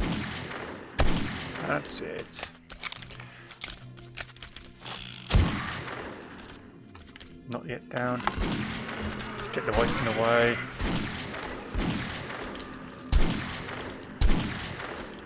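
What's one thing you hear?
Gunshots fire in loud, sharp single blasts.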